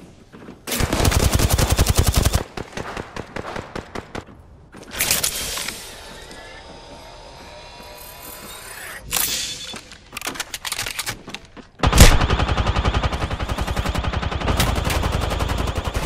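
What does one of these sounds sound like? An automatic gun fires rapid bursts in a video game.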